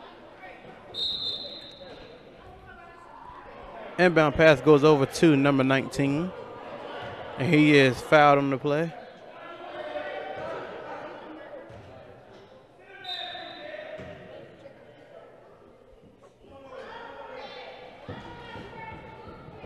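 Spectators chatter in an echoing gym.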